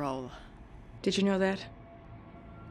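A woman answers in a low, serious voice nearby.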